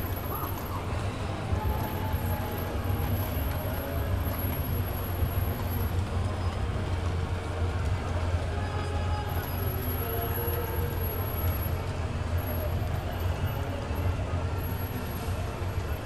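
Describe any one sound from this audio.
A crowd chatters in the street below.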